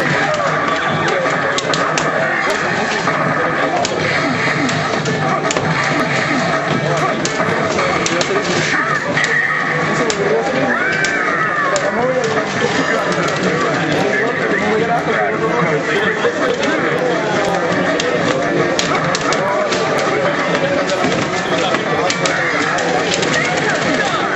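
Fighting game hits and effects crack and thump from a loudspeaker.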